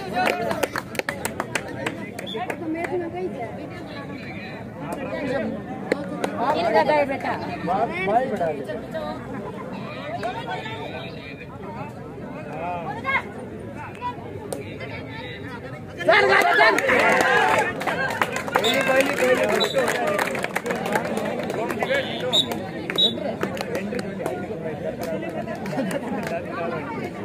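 A large outdoor crowd shouts and cheers with excitement.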